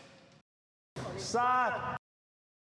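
A young man speaks briefly.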